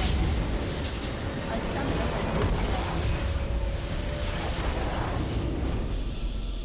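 A large structure explodes with a deep booming rumble.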